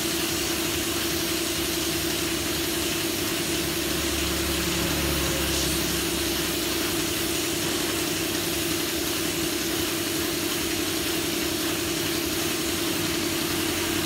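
A spray gun hisses with a steady rush of air.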